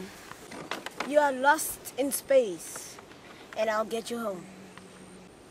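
A girl speaks excitedly close by, her voice rising and falling.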